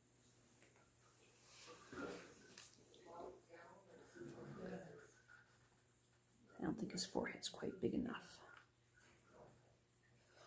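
Hands softly squeeze and press damp clay.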